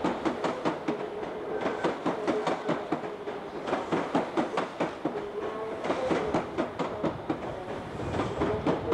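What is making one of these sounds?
Train wheels clatter rhythmically over rail joints as a train rolls slowly past.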